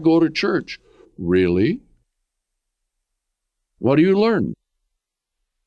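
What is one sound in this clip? An elderly man speaks calmly and clearly into a close microphone, with short pauses.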